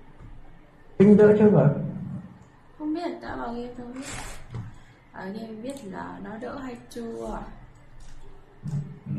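A young woman speaks into a close microphone, with animation.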